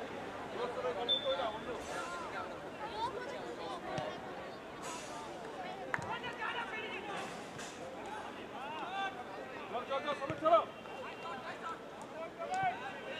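Players call and shout to each other across an open field.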